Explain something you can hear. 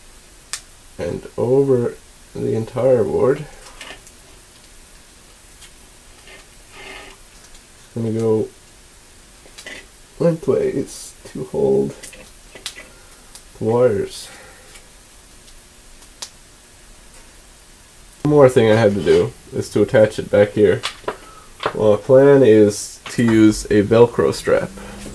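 A man talks calmly close by, in short bursts with pauses.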